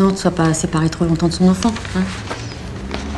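A woman speaks calmly and firmly, close by.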